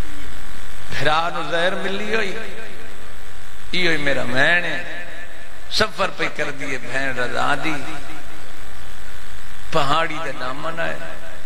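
A man recites passionately into a microphone, heard through loudspeakers with a ringing echo.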